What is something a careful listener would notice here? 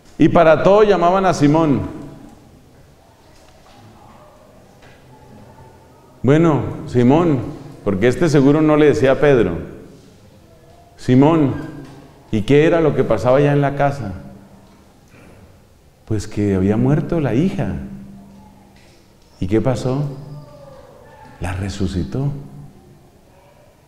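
A middle-aged man speaks calmly into a close microphone, with pauses between phrases.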